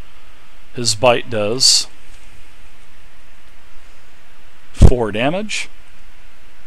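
A man speaks casually over an online call.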